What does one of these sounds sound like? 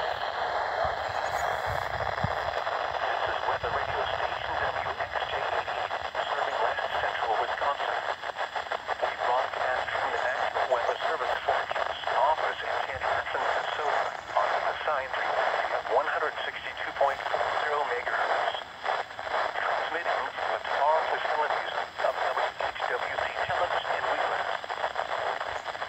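A weather radio plays a synthesized voice reading out a broadcast through a small tinny speaker.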